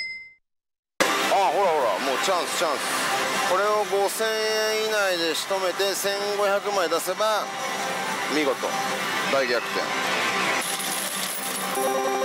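Slot machines chime and play electronic jingles in a noisy hall.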